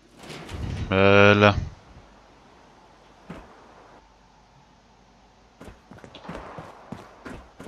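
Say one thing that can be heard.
A young man talks calmly into a headset microphone.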